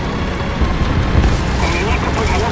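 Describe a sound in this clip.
Bushes rustle and branches crack as a tank pushes through them.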